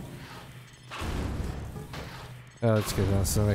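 A weapon fires with a crackling energy blast.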